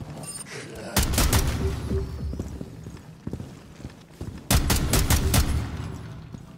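Rifle shots fire in quick bursts, loud and sharp.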